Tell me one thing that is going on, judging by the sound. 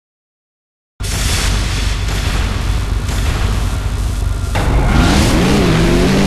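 Racing buggy engines roar and rev.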